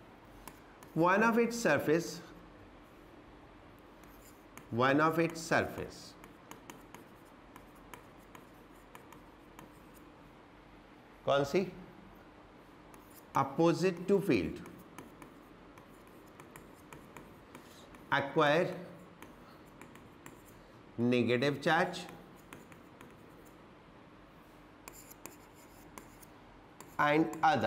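A man speaks calmly in short bursts.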